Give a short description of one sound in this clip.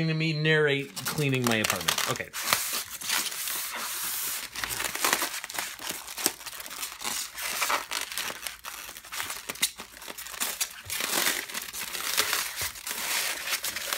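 Foam blocks squeak and creak as hands rub them.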